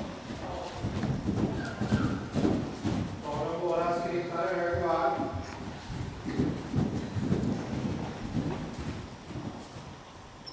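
Horses' hooves thud on soft ground as they trot.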